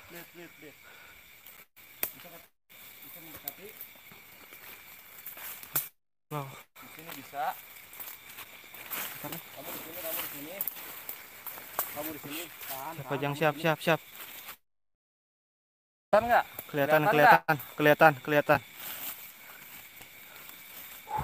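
Footsteps rustle through dry leaves and undergrowth.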